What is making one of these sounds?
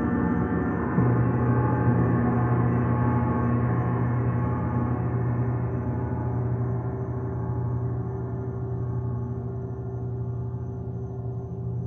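A hanging gong is struck and rings out, slowly fading.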